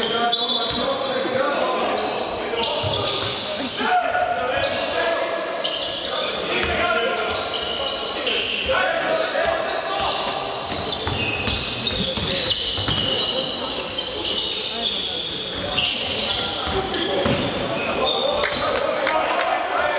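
Sneakers squeak sharply on a wooden court in a large echoing hall.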